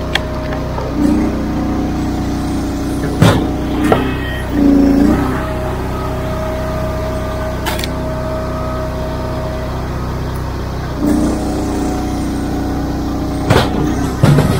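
A hydraulic log splitter whines as it strains.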